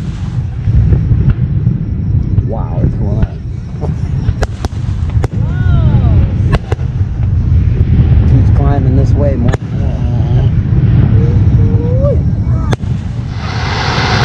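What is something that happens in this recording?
Fireworks burst with sharp bangs in the distance.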